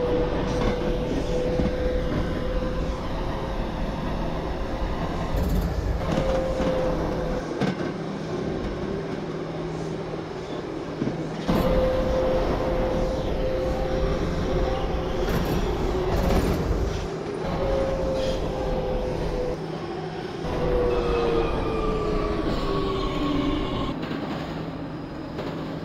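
A subway train rumbles and rattles steadily through a tunnel.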